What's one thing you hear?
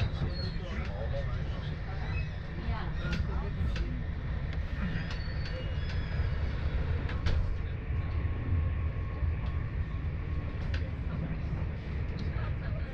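Train wheels click and squeal on the rails.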